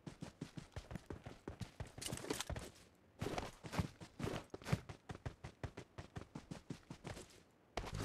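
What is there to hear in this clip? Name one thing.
Quick footsteps run over grass and gravel.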